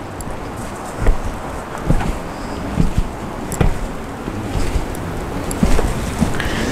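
Footsteps tread slowly on concrete steps.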